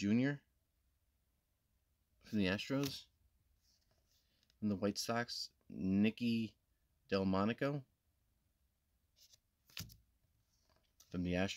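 A trading card is slid out from a stack with a soft papery rustle.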